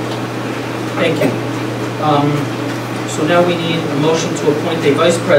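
A man speaks calmly into a microphone in a room with some echo.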